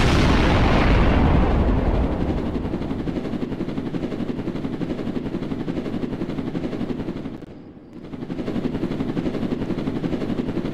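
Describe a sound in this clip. A drone's propellers whir loudly with a rapid buzzing hum.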